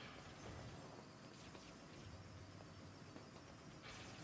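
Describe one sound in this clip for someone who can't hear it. Energy shots fire in rapid bursts.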